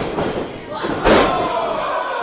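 A body slams heavily onto a wrestling ring mat.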